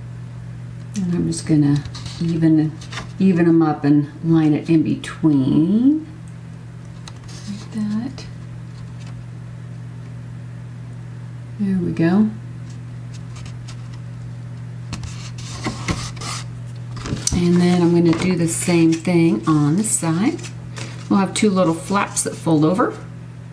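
A woman speaks calmly and clearly into a nearby microphone.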